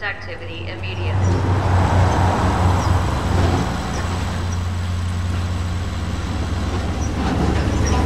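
A heavy truck engine rumbles steadily nearby.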